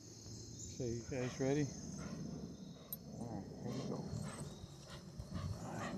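Dogs' paws rustle through grass.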